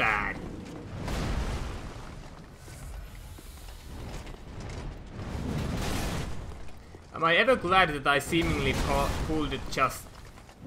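Blades swing through the air with swift whooshes.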